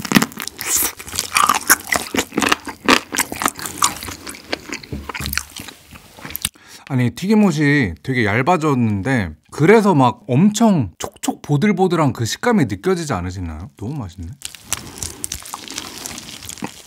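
A young man chews and crunches crispy food close to a microphone.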